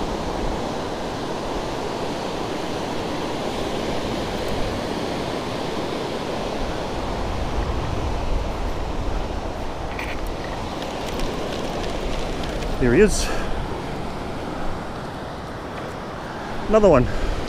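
Waves break and wash onto a sandy beach.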